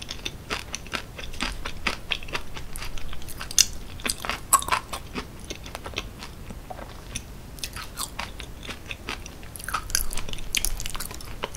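A metal fork scrapes and clinks against a glass bowl.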